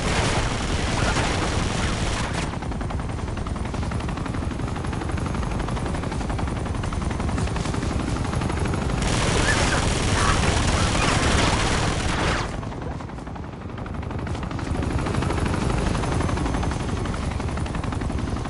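Helicopter rotor blades thump loudly overhead.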